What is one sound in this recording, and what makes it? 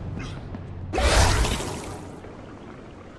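A magical whoosh bursts out loudly and fades.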